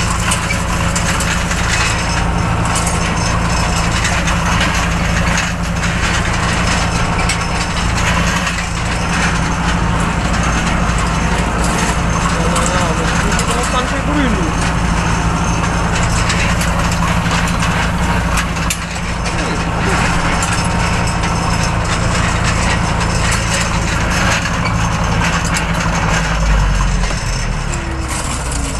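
A tractor engine drones steadily up close, heard from inside the cab.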